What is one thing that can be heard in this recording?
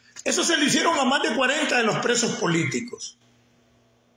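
An elderly man speaks with animation close to a phone microphone.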